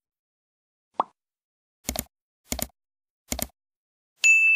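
A mouse button clicks several times.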